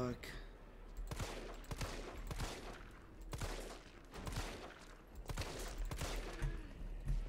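Gunshots ring out in quick succession.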